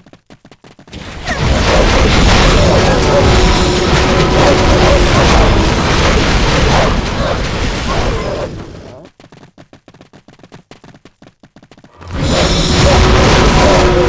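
Fire spells roar and crackle in loud bursts.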